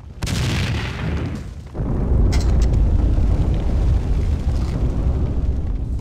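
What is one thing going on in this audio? A fire roars loudly.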